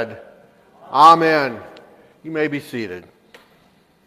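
A man speaks loudly and with animation in a large echoing hall.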